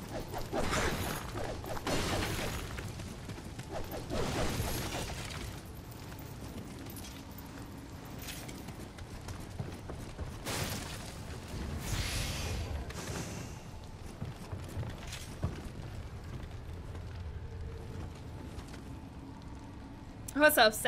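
A young woman talks into a close microphone.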